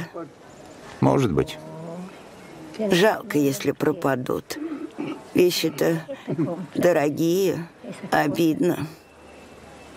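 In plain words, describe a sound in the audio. An elderly woman speaks calmly and slowly, close by.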